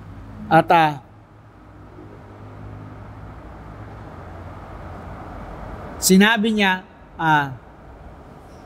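A middle-aged man reads aloud calmly into a microphone, in short bursts with long pauses.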